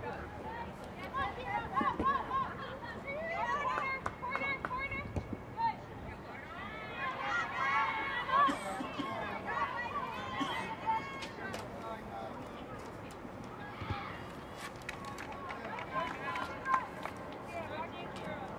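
Young women shout and call to each other across an open field outdoors.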